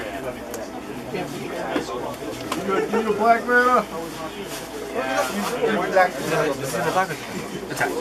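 Playing cards riffle and flick as a deck is shuffled in hands.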